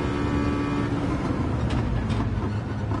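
A racing car engine drops in pitch as the car slows down.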